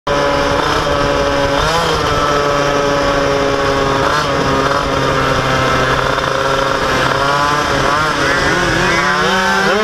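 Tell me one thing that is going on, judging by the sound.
A motorcycle engine hums steadily close by, rising and falling in pitch.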